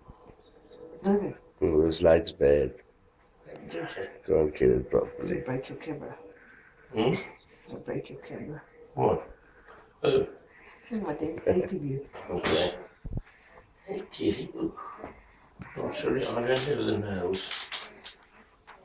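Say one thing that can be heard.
A man talks nearby in a quiet room.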